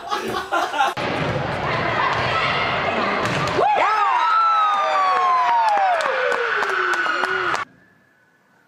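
A volleyball thumps off players' hands in a large echoing gym.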